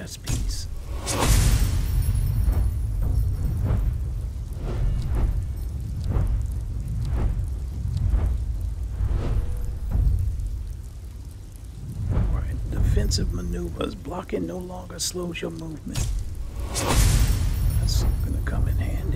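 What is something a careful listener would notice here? A game's magical whoosh swells and rings out twice.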